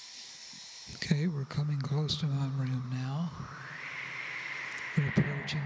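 An elderly man sings into a microphone, heard close and loud.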